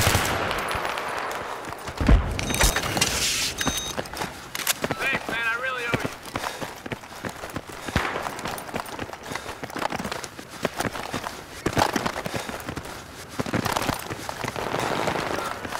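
Rifle shots crack in short, quick bursts.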